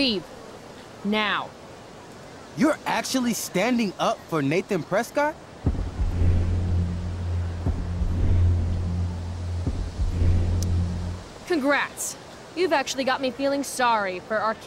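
A young woman speaks sharply and angrily.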